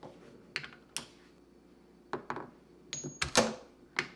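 A ball drops and knocks against wood.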